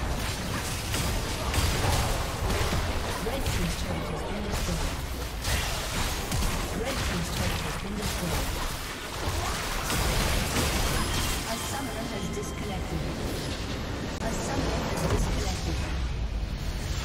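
Game spell effects crash and blast in a busy battle.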